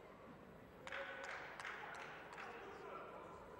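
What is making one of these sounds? Spectators clap and cheer in a large hall.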